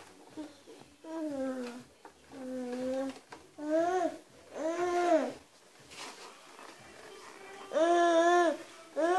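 A toddler babbles and calls out in drawn-out sing-song sounds.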